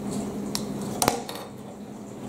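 A plastic piece is set down on a wooden table with a knock.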